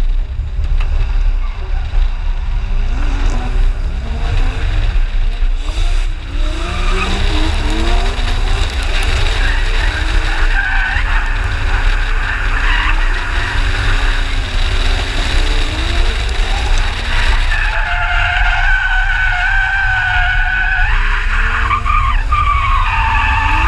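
Wind buffets loudly and steadily, low and rumbling.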